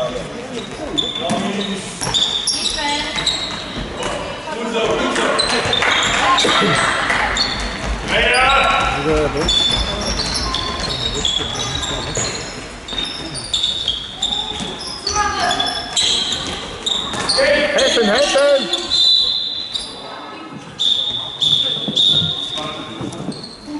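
Sneakers squeak sharply on a hard floor in a large echoing hall.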